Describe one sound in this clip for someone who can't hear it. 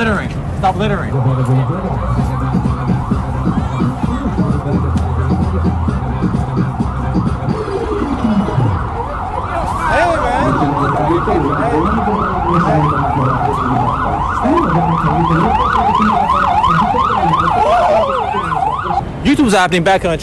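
A crowd murmurs outdoors all around.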